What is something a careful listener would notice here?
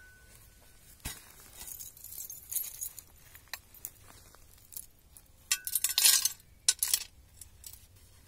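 Hands dig and rustle through dry leaves and soil.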